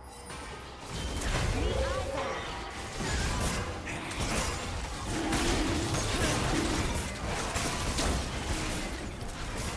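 Video game spell effects whoosh and clash during a fight.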